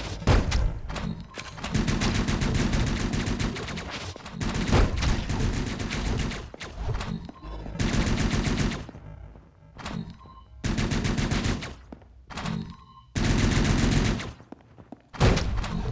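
Electronic sword slashes and energy blasts burst out in quick flurries.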